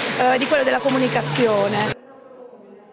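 A woman speaks with animation through a loudspeaker.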